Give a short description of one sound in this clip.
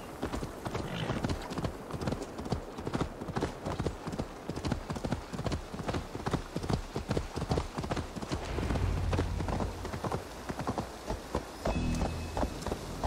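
A horse's hooves pound rapidly on a dirt path.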